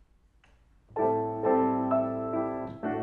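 A piano plays a lively duet, ringing loudly.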